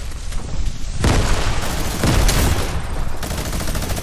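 A loud blast bursts and crackles.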